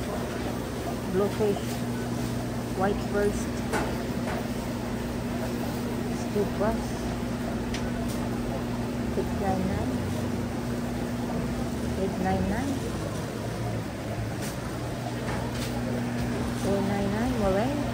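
A man talks at a distance indoors.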